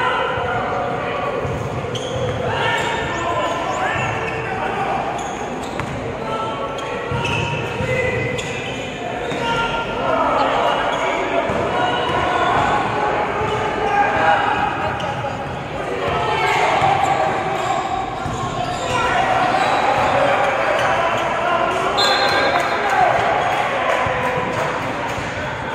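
Spectators and players shout and call out in a large echoing gym.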